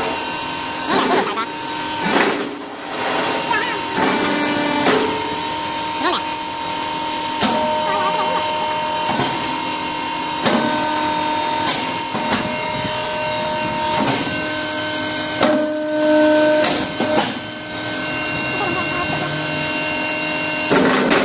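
A machine hums and rattles steadily.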